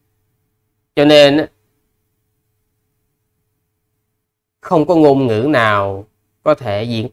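A young man speaks calmly and close to the microphone, in short phrases with pauses.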